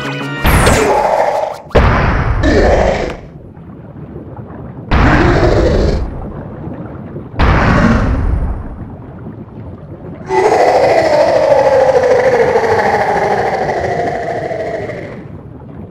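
A giant monster roars loudly.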